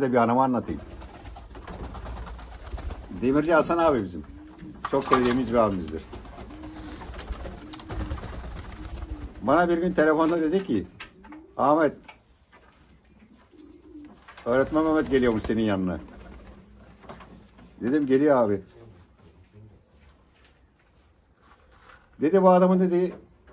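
An older man talks calmly in short bursts close by.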